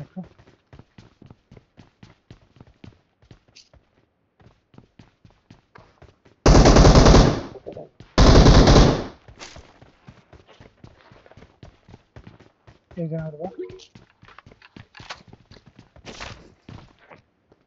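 Footsteps patter quickly on a hard floor.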